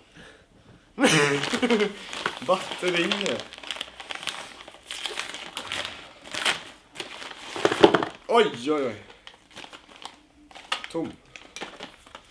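A plastic mailer bag crinkles and rustles as hands tear it open.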